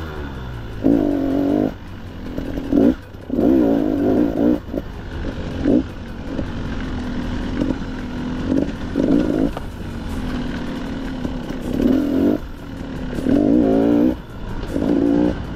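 A dirt bike engine revs up and down in bursts close by.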